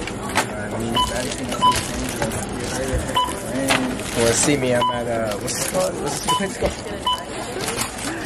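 A checkout scanner beeps several times.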